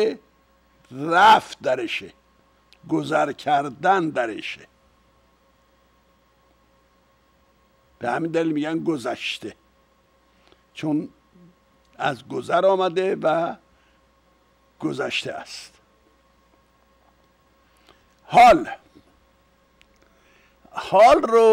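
An elderly man speaks calmly into a close microphone, with pauses between phrases.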